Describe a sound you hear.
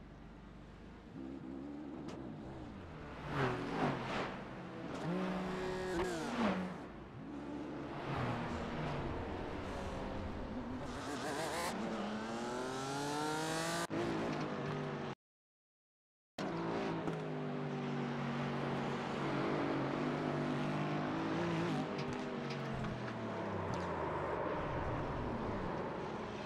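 A racing car engine roars, revving up and down through the gears.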